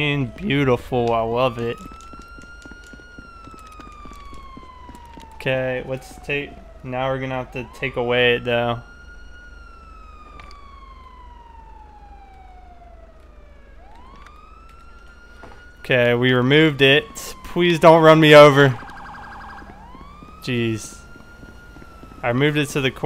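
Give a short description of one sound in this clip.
A siren wails and slowly rises and falls.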